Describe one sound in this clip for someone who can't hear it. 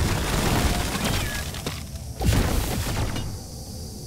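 A rapid gun fires in bursts.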